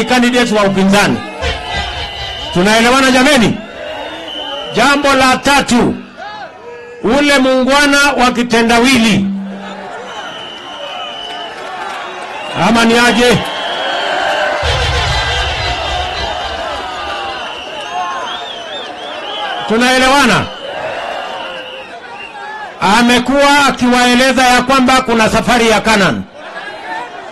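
A man shouts with animation through a microphone and loudspeakers, outdoors.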